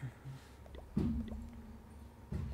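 A game menu makes a short tone as it opens.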